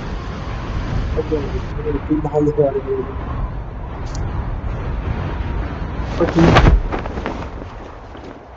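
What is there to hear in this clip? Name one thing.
Wind rushes loudly past a skydiver in free fall.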